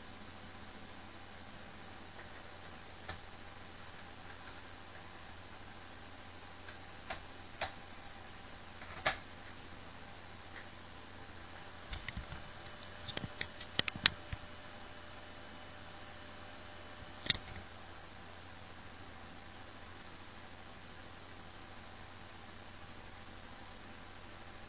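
Static hisses steadily from a television.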